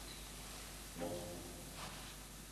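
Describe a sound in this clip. A young boy speaks softly and briefly close by.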